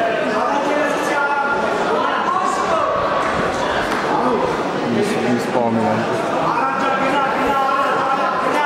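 A crowd of spectators shouts and cheers in a large indoor hall.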